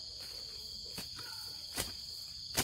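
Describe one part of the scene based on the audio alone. A hoe thuds into the earth.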